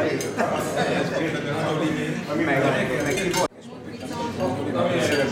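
Several older men talk and laugh together nearby.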